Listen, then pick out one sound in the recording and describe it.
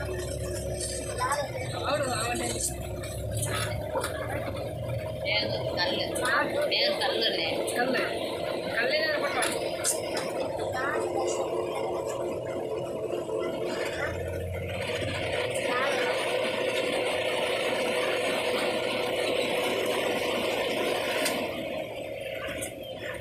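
A vehicle engine hums steadily up close.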